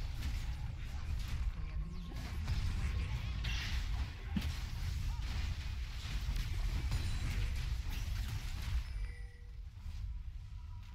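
Quick hits and bursts clash during a fight.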